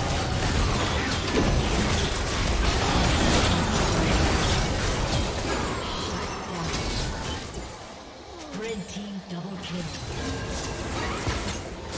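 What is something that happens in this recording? Spell effects and weapon hits clash and crackle in a busy battle.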